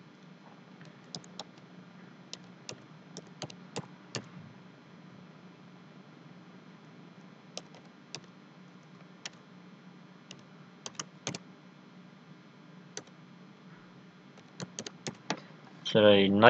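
Keys on a keyboard click softly as someone types.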